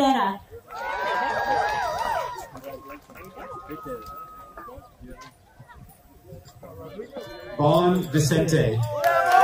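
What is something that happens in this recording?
A speaker's voice carries over a loudspeaker outdoors.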